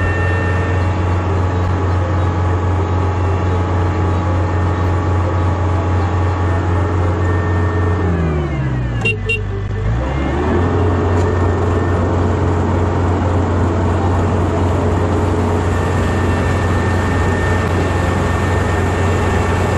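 Rice stalks rustle and crunch as the harvester cuts through them.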